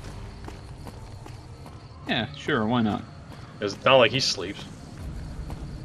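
Footsteps crunch steadily on dirt.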